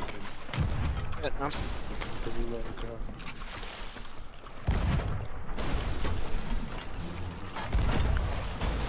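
A cannon fires with a heavy boom.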